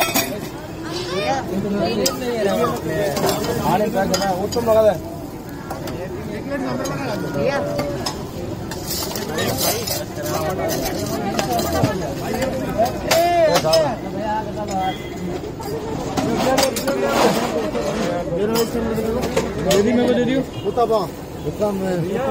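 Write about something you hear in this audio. Many men and women chatter around, close by, outdoors.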